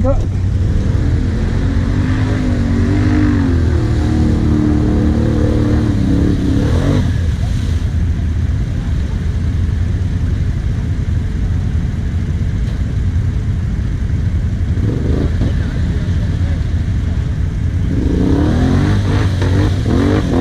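Quad bike engines idle.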